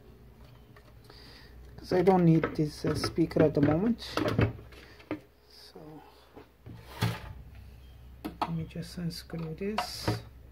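Plastic and metal parts rattle and clack as they are handled.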